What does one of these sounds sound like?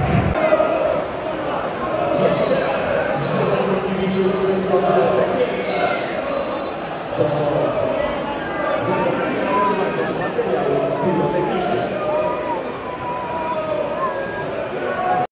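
A large crowd of fans chants and shouts loudly in a stadium.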